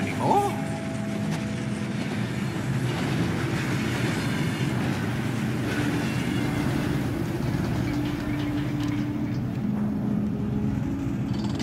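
A rail cart rumbles along metal tracks.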